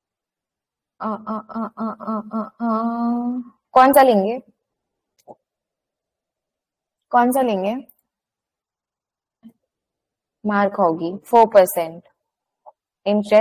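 A young woman speaks calmly through an online call, in short bursts.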